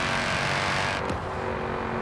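A car's exhaust pops and crackles as the engine shifts gear.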